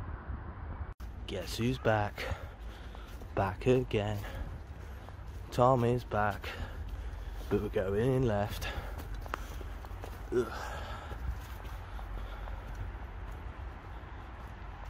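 Footsteps crunch on dry fallen leaves.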